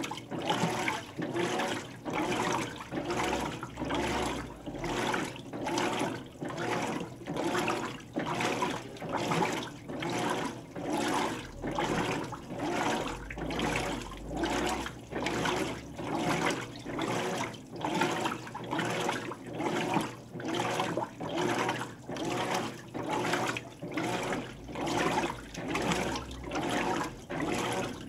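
Water sloshes back and forth in rhythmic surges as a washing machine agitates.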